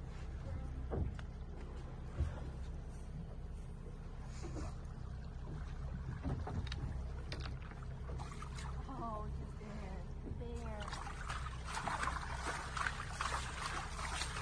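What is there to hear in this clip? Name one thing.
Water laps and splashes gently against a whale's back.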